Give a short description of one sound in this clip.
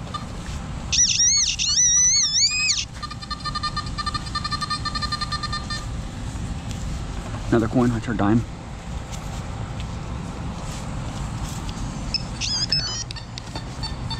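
A metal detector probe beeps and warbles close by.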